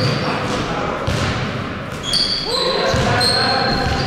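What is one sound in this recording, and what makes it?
A basketball bounces on the floor with echoing thuds.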